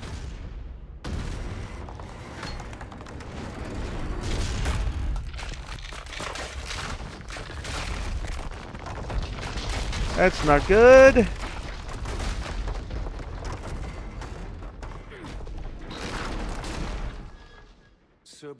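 Heavy thuds and rumbling crashes ring out.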